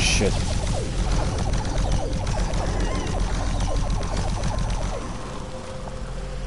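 A plasma gun fires rapid buzzing shots.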